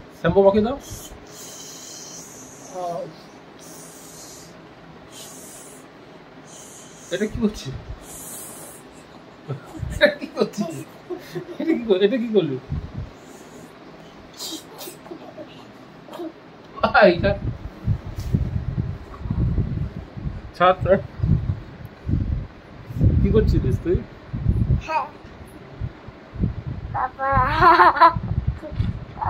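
A young child laughs and squeals close by.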